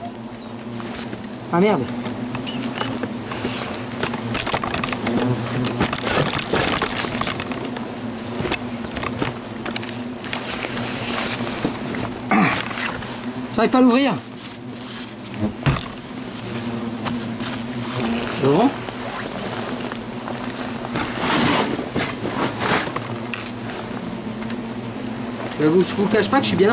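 Bumblebees buzz close by, their drone rising and falling as they fly past.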